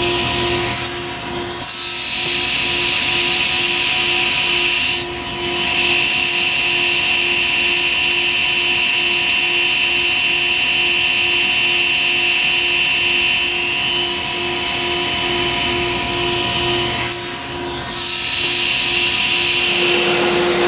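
A table saw blade spins with a steady, loud whine.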